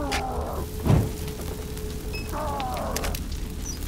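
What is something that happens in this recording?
Flames crackle as they burn.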